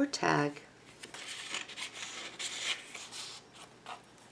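Paper rustles and slides as pages are handled.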